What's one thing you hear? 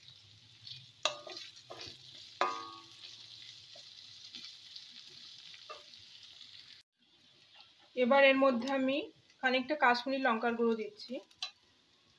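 A wooden spatula scrapes and knocks against a metal pan.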